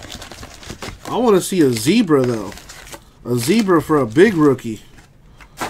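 Foil card packs crinkle as hands shuffle through them.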